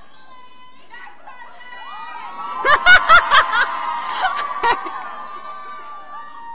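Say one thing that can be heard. A young woman speaks with emotion through a microphone and loudspeakers.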